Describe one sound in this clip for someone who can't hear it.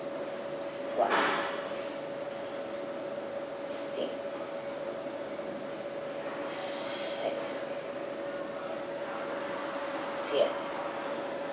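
A young woman exhales audibly.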